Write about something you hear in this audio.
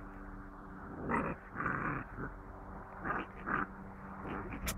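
Puppies growl playfully as they tug at a toy.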